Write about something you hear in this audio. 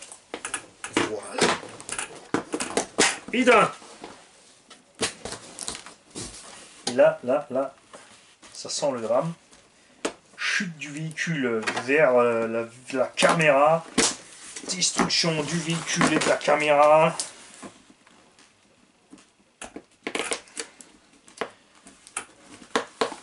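A plastic car body clicks and rattles as a man handles it.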